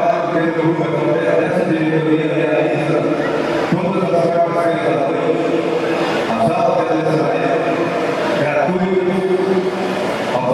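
An elderly man speaks calmly into a microphone, heard through loudspeakers in a large room.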